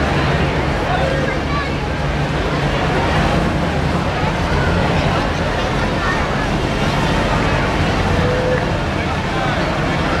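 A pickup truck's engine rumbles as it rolls slowly past.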